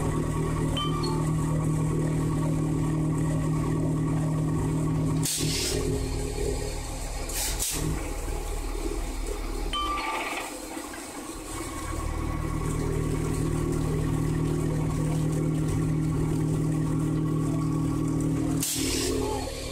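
A machine hums and rumbles steadily close by.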